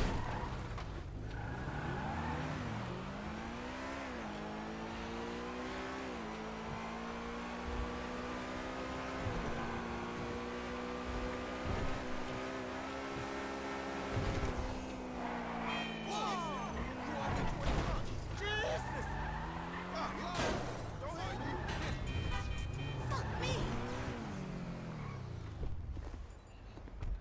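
A sports car engine roars and revs up and down through the gears.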